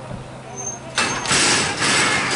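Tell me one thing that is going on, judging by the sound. Starting gates bang open with a loud clatter.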